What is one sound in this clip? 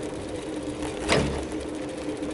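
A wheel thumps over a bump in the road.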